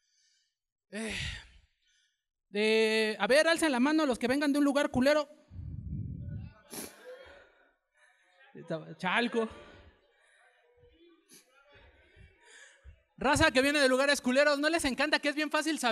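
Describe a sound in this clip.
A man speaks loudly and with animation into a microphone.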